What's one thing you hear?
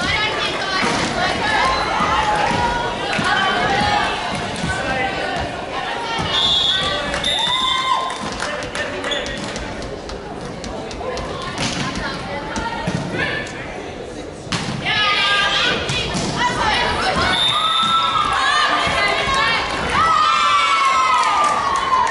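Young women call out and chatter across a large echoing hall.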